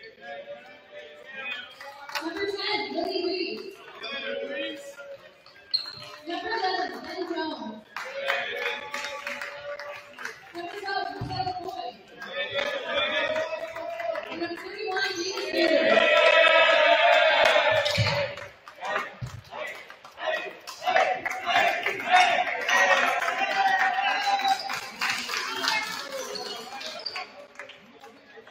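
Basketballs bounce on a hardwood floor in a large echoing gym.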